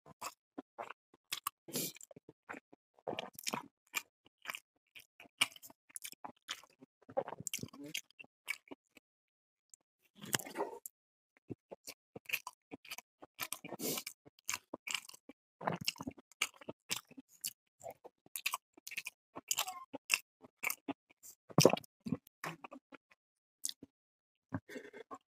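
Fingers scrape and squish food on a metal plate.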